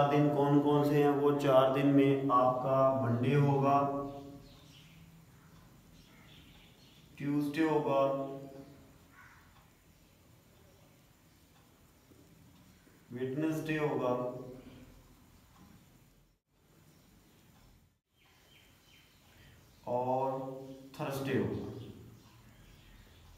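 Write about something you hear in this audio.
A young man speaks calmly and clearly, pausing between words.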